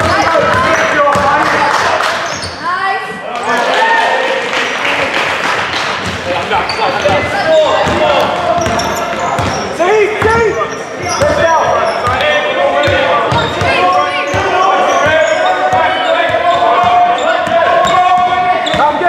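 Young men shout to each other across the hall.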